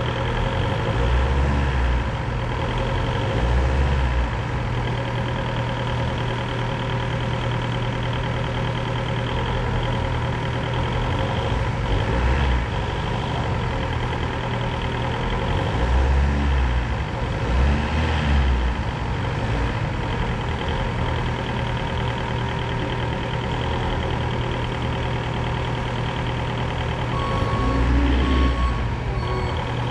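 A forklift engine idles with a steady low rumble.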